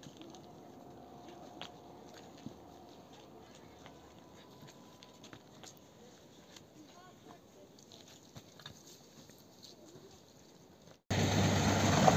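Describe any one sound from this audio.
Footsteps scuff on a rocky path.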